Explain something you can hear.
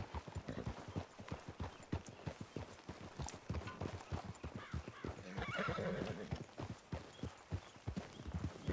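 A horse's hooves thud at a steady trot on soft ground.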